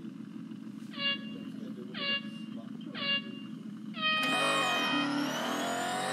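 Starting beeps sound three times, then a higher beep.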